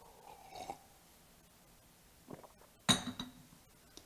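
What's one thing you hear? A cup is set down on a wooden surface with a soft knock.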